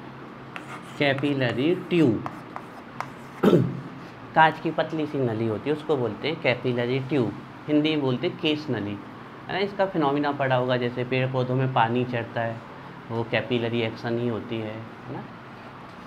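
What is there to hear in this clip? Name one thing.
A man speaks calmly, explaining.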